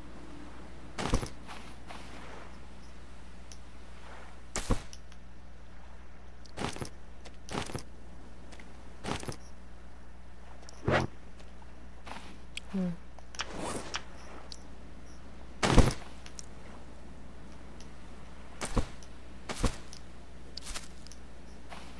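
Palm fronds rustle and swish as they are picked up and dropped.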